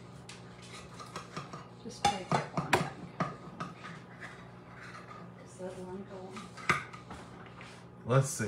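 A metal utensil scrapes and clinks against a muffin tin.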